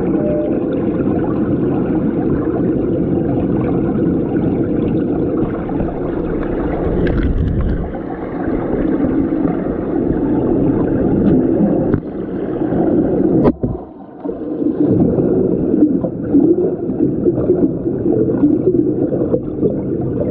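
Water churns and bubbles around a swimmer, heard muffled underwater.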